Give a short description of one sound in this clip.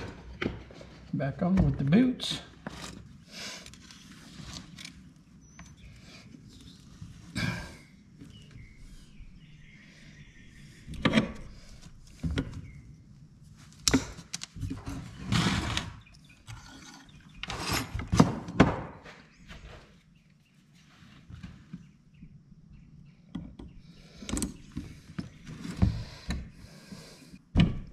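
Metal tools clink and clank against a metal part.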